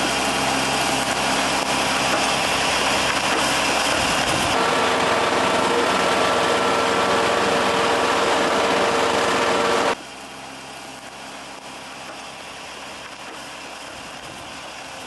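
A heavy diesel engine of a road roller rumbles steadily close by.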